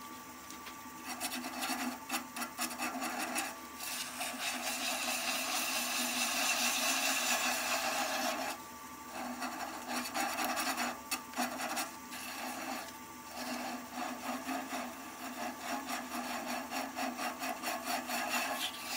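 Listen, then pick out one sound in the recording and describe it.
Sandpaper rasps against spinning wood.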